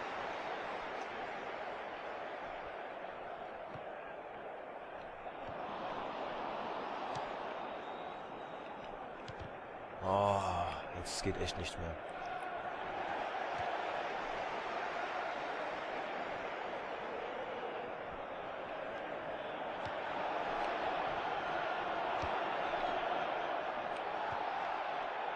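A stadium crowd roars and murmurs steadily throughout.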